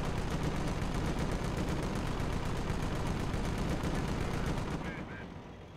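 Heavy gunfire and explosions rumble in a battle.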